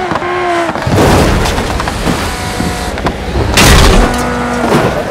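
Cars crash into each other with loud crunching impacts.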